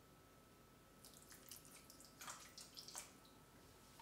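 Water pours from a plastic bottle into a metal pot.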